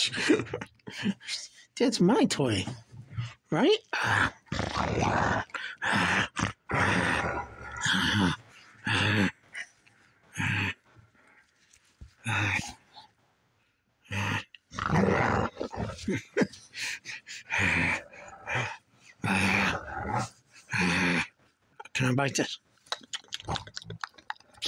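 A dog growls playfully up close in bursts.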